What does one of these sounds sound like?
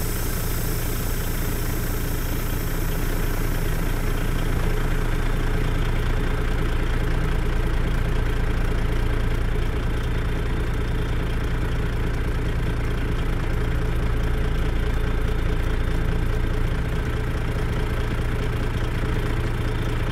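A truck engine rumbles steadily at idle.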